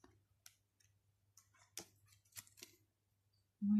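Playing cards tap and slide softly on a surface.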